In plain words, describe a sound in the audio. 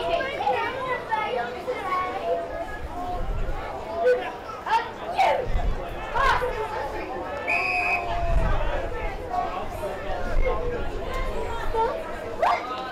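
Adult men shout and call to each other outdoors.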